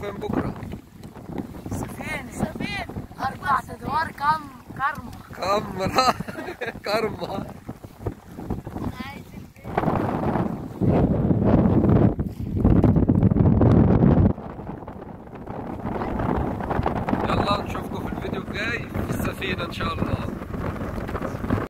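Water splashes against a pedal boat.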